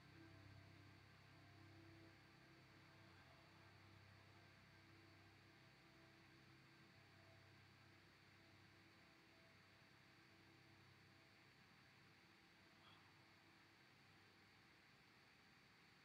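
A man hums a low, steady tone close by, fading out gradually.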